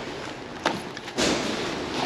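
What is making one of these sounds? A bag rustles and scrapes on a stone ledge.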